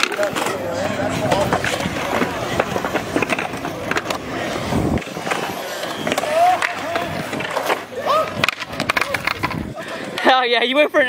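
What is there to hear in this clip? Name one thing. Skateboard wheels roll and rumble on concrete.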